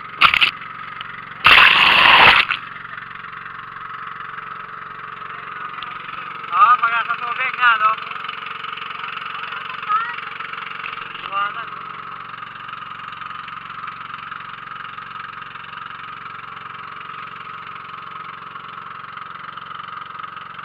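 A boat engine hums steadily close by.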